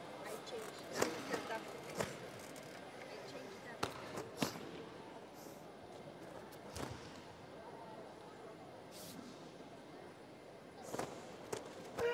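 A karate uniform snaps sharply with quick punches and kicks.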